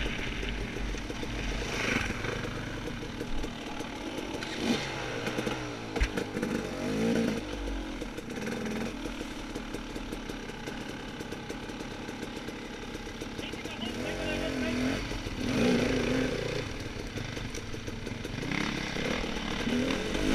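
Other dirt bike engines buzz nearby.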